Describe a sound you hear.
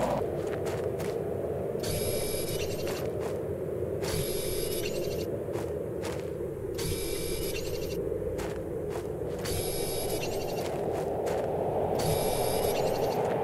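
A mining tool zaps crystals with a buzzing, electronic hum in repeated bursts.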